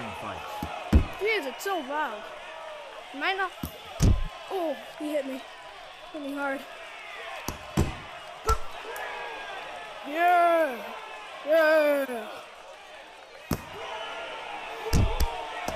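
Boxing gloves land heavy punches with dull thuds.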